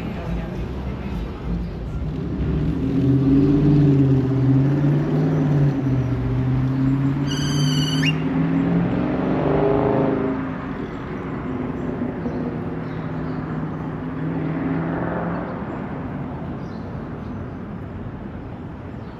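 Cars drive past on a nearby road outdoors, their engines humming and rising and fading.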